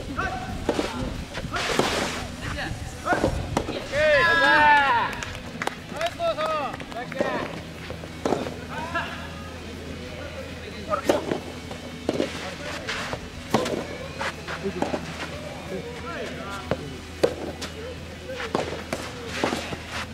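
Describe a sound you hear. Soft tennis rackets strike a rubber ball outdoors.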